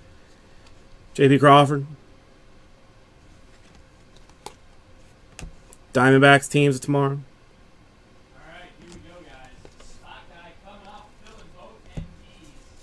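Trading cards flick and rustle as hands sort through them.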